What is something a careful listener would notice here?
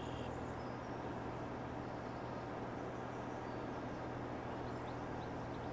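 A tractor engine hums steadily while driving.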